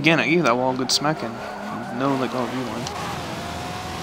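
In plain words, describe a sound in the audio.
Tyres squeal on tarmac.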